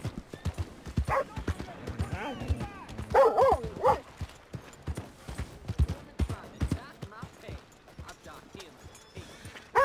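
A horse's hooves thud on soft muddy ground.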